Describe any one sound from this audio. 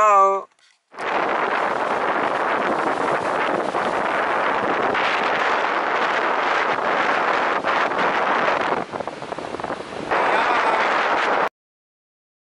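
Waves break and wash up on a beach.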